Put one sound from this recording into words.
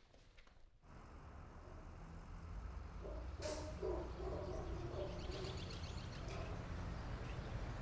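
Traffic hums faintly in the distance outdoors.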